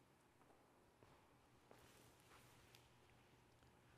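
Soft footsteps shuffle across a hard floor.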